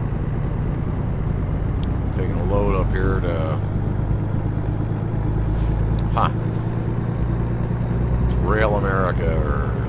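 A truck engine drones steadily while driving along a road.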